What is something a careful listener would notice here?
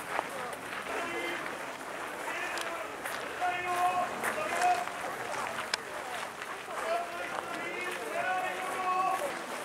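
Men and women chatter and call out nearby.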